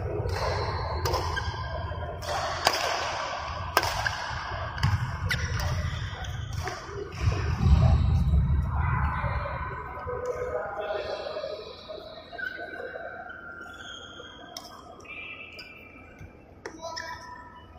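A racket strikes a shuttlecock with sharp smacks in a large echoing hall.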